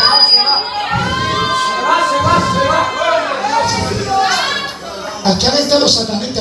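A man speaks with passion into a microphone, heard through loudspeakers in an echoing room.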